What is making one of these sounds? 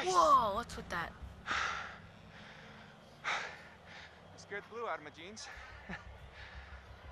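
A young man talks breathlessly and nervously close by.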